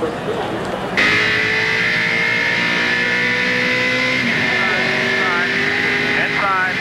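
A race car engine roars loudly and steadily up close.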